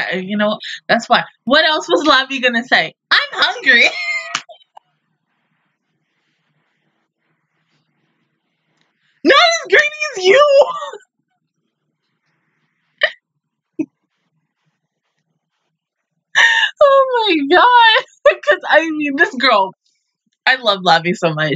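A young woman laughs heartily.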